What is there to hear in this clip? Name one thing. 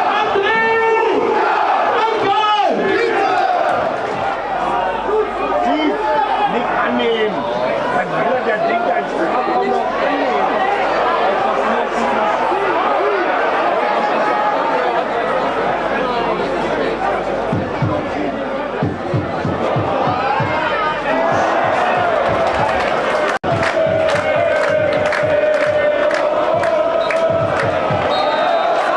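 A large crowd of fans sings and chants loudly outdoors.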